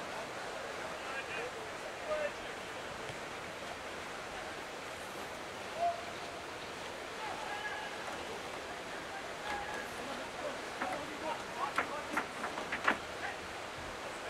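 Young men shout to each other across a field outdoors.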